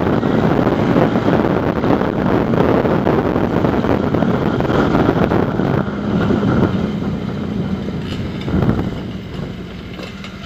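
A quad bike engine roars close by.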